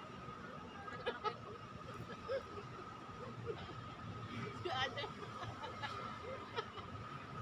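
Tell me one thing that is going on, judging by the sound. A young woman talks with animation nearby.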